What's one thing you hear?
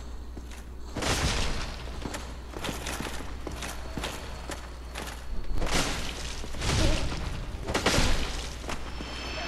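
A sword swings and strikes with heavy thuds.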